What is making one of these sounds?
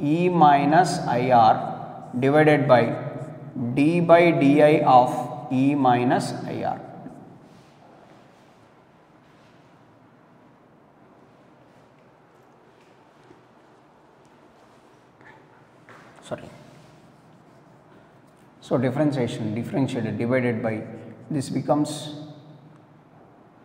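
A young man speaks calmly nearby, explaining in pauses.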